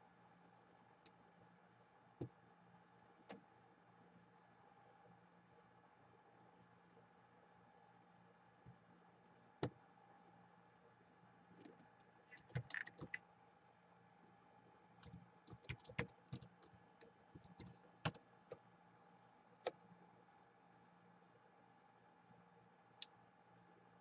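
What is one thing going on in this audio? Fingers tap on a laptop keyboard with quick, uneven clicks.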